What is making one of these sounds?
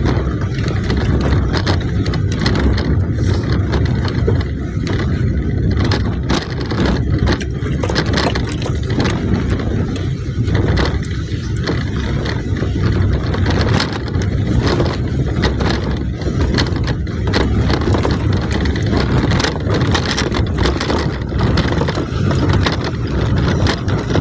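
A vehicle's body jolts and clatters over bumps.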